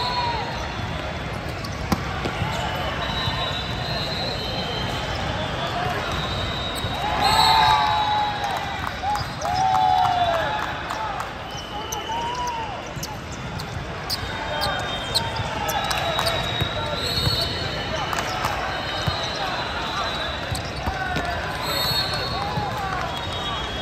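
Sneakers squeak sharply on a hard court floor, echoing in a large hall.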